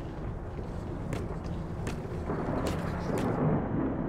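A refrigerator door clicks open with a soft thud.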